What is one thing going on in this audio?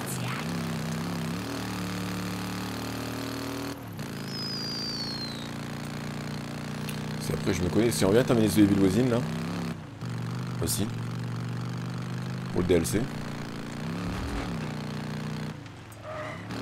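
A motorcycle engine hums steadily and revs.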